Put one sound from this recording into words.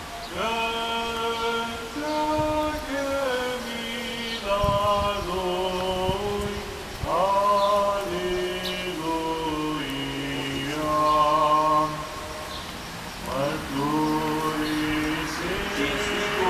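A man chants in a steady sung voice through a microphone outdoors.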